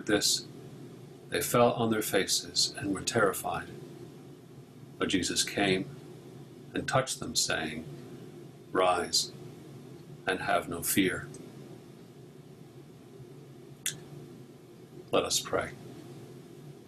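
A middle-aged man speaks calmly and slowly through a microphone, with pauses between phrases.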